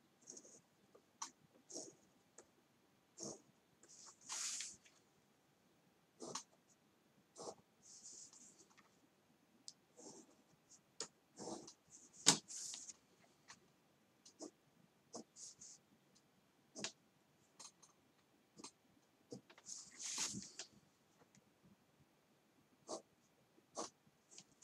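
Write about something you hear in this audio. A pen scratches across paper in short strokes.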